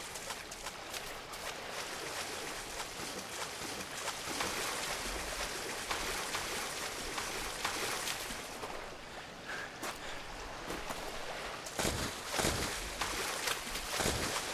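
Leaves rustle as someone pushes through them.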